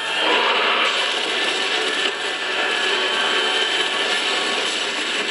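A monster snarls and screeches loudly.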